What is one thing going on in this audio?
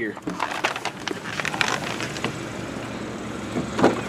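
A car trunk lid clicks open.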